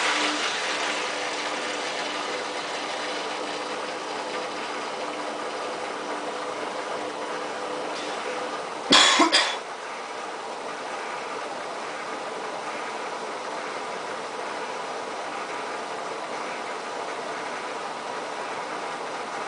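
A washing machine hums and whirs steadily as its drum turns.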